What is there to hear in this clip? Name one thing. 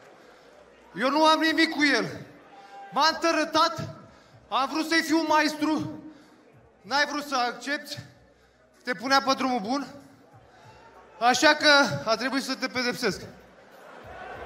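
A man speaks loudly into a microphone over a public address system in a large echoing hall.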